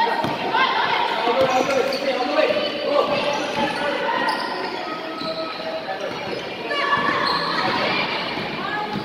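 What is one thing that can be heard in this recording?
Young women shout and call out in an echoing hall.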